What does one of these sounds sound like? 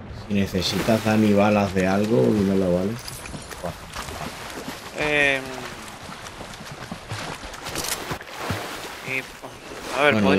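Water splashes and sloshes as a swimmer paddles.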